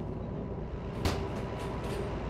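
A metal cab door clicks open.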